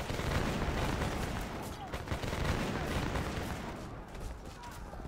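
Muskets fire in rolling volleys.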